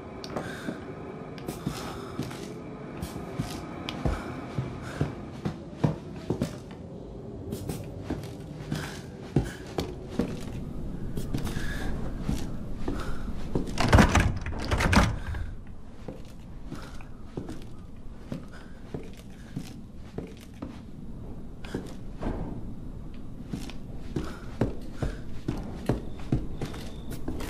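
Footsteps thud and creak slowly across old wooden floorboards.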